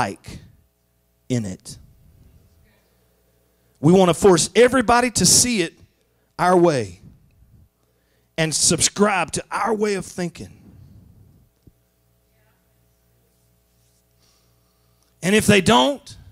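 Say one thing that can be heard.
A middle-aged man speaks with animation through a microphone, in bursts with pauses, heard in a reverberant hall.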